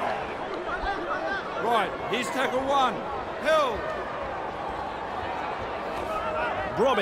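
A large stadium crowd murmurs and cheers in the distance.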